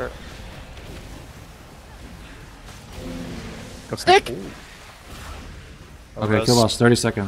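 Spell effects whoosh and crackle in a busy battle.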